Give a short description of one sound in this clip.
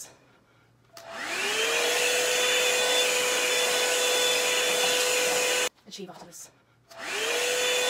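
A hair dryer brush whirs loudly and steadily.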